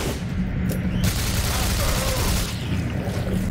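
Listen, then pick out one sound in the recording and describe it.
A heavy gun fires a burst of loud shots.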